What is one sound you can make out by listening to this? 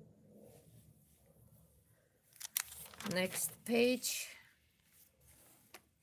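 A magazine page rustles as it is turned.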